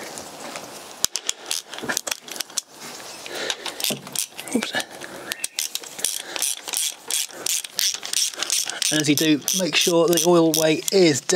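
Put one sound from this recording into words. Metal parts click and clink under a man's hands.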